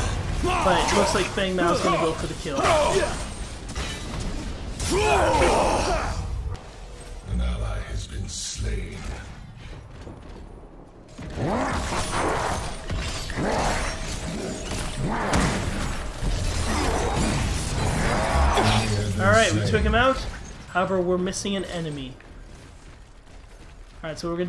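Magical blasts and explosions crackle and boom in a video game.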